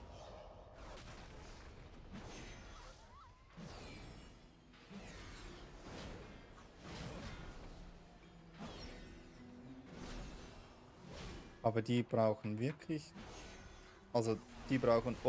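Magic spell effects whoosh and chime repeatedly.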